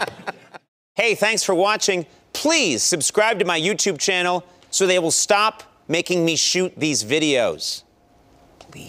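A man speaks clearly into a microphone in a lively way.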